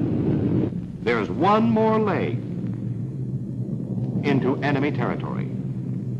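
Several propeller aircraft drone steadily in flight.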